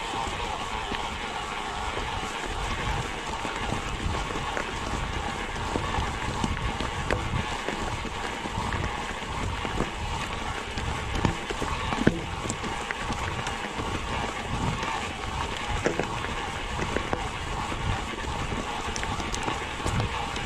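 A bicycle frame rattles and clatters over bumps.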